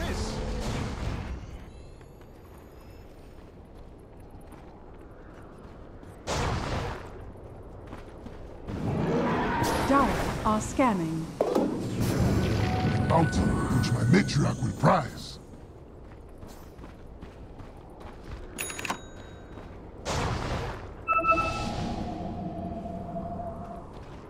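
Magic spells whoosh and crackle in short bursts.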